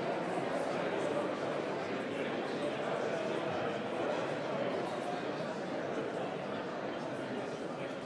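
A man talks quietly up close to another man.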